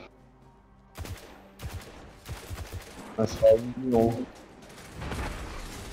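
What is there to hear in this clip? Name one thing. A rifle fires in short bursts of sharp shots.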